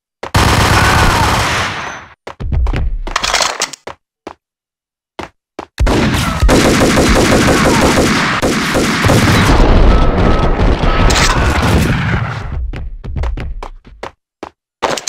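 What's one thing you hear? Guns fire in rapid bursts, echoing off hard walls.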